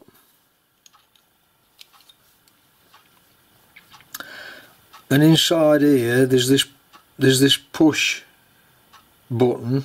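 A small wrench clinks against a metal fitting.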